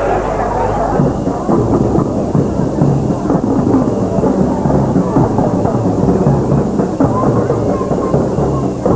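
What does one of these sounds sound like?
A bass drum booms in a steady marching beat.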